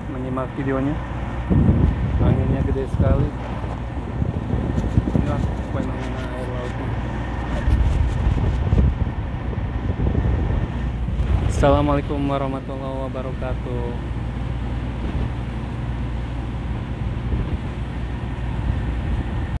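Water churns and splashes beside a moving ship.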